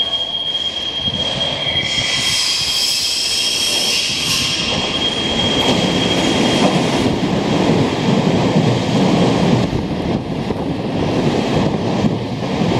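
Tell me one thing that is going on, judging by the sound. A train rumbles into the station and rolls past close by.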